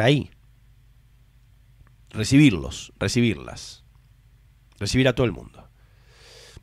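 A middle-aged man speaks calmly and closely into a microphone, in short bursts.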